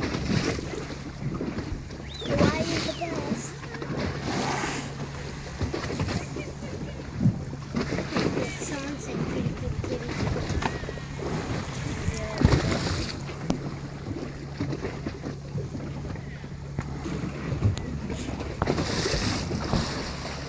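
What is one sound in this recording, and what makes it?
Choppy sea water splashes and laps outdoors.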